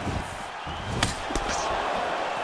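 Punches thud against a raised guard.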